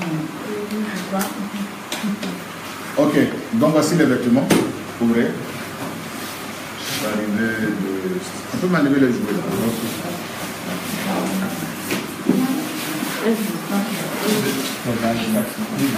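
A man speaks calmly in a room, close by.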